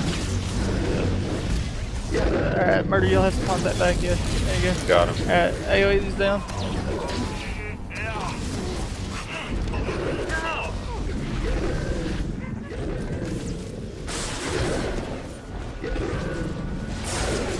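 Energy blades hum and clash in a fight.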